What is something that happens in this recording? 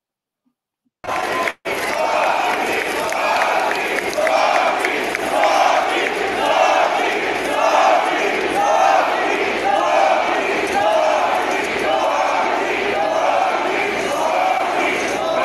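A large crowd chants and cheers rhythmically in a big open venue.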